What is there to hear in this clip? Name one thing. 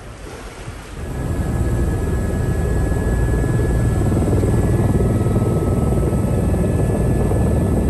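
A helicopter engine roars steadily with a high whine.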